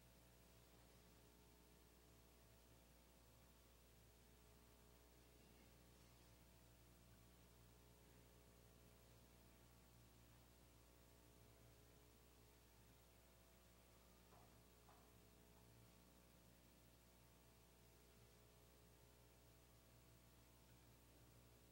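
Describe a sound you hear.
A piano plays softly in a large hall.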